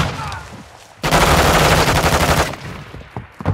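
A submachine gun fires a long, rapid burst.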